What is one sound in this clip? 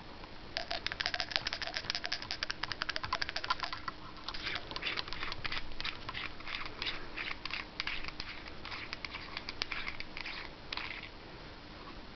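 A threaded metal cap clicks and scrapes rapidly as a hand twists it off.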